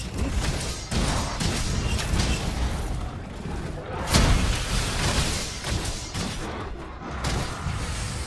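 Blade strikes hit a monster with sharp impacts.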